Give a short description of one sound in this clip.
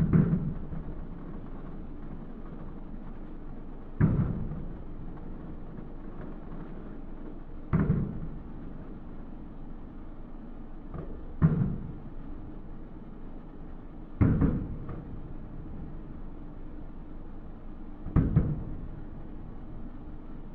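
Fireworks burst with deep booms that echo far off, every few seconds.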